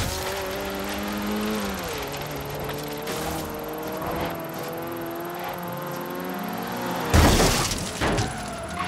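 A car engine roars and shifts through its gears at speed.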